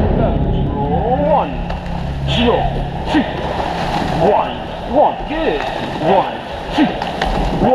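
Oars splash and knock in the water with each stroke.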